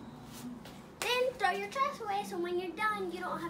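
A young girl speaks with animation, close by.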